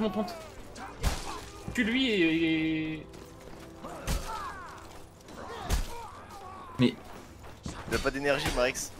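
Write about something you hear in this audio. Swords clash and strike with sharp, heavy blows.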